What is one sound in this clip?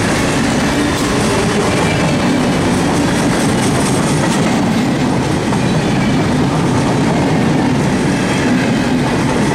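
A long freight train of hopper cars rumbles past.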